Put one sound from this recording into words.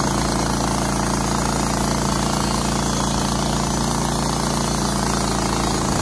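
A gasoline engine on a sawmill runs loudly and steadily close by.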